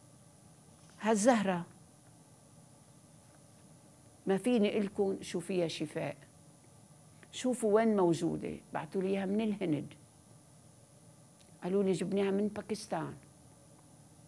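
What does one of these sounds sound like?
An elderly woman speaks calmly into a close microphone, in short phrases with pauses.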